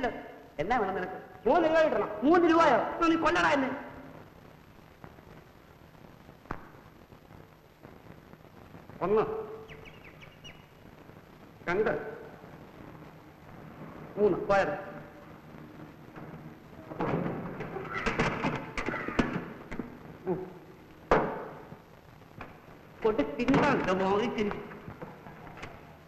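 A man speaks nearby in short bursts.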